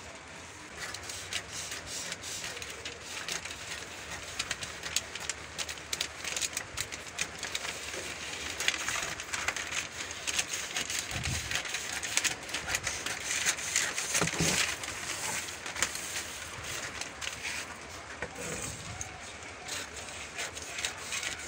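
Scissors snip through stiff paper.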